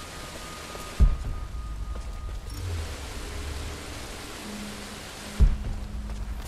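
Rocks crash down with a heavy thud.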